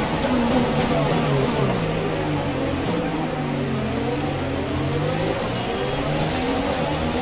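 Other racing car engines whine nearby.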